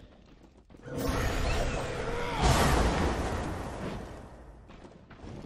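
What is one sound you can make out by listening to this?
A magic blast whooshes and rumbles loudly.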